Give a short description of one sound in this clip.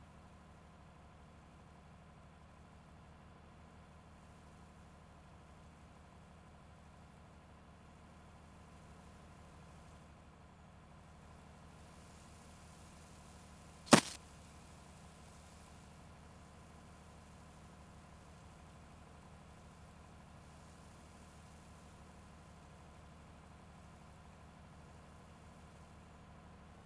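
A combine harvester's engine hums steadily nearby.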